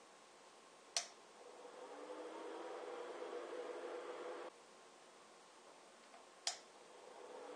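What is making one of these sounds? A switch clicks.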